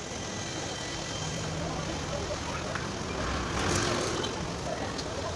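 Motorbikes ride past on the street.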